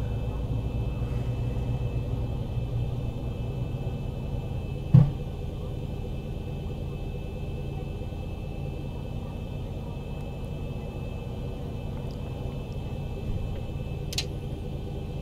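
Jet engines hum low and steady at idle.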